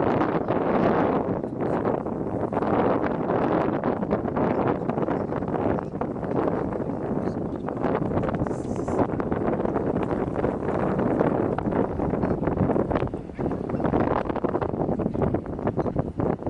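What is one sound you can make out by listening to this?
Strong wind blows and rumbles outdoors.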